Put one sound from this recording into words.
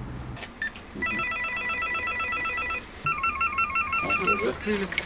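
An intercom rings with a repeated electronic tone.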